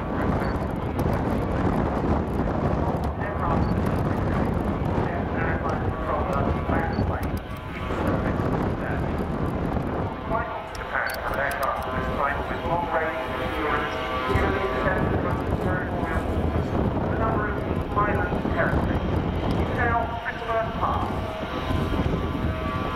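A large jet airliner roars overhead with a deep, steady rumble.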